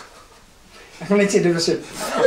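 A second man laughs nearby.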